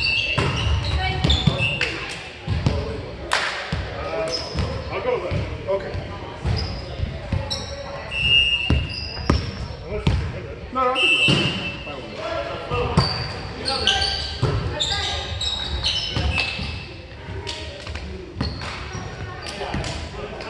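Men call out and talk loudly in a large echoing gym.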